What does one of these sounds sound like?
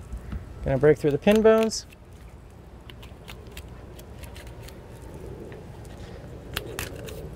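A knife slices through raw fish with soft, wet scraping.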